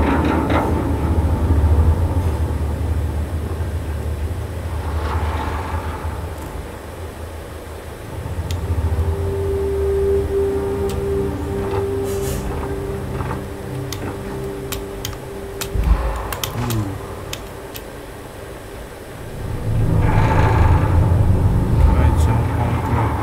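Heavy boots clank on metal stairs and walkways.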